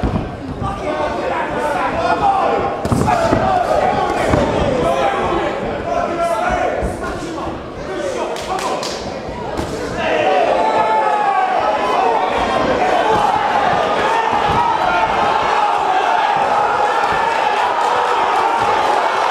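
Punches thud against bodies.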